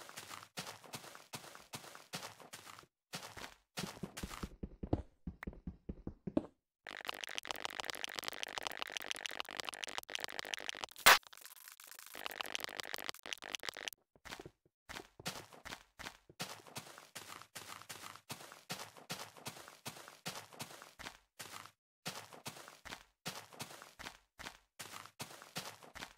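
Blocky footsteps thud steadily on grass.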